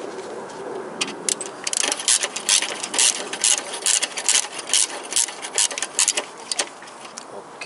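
An engine ticks rapidly and unevenly.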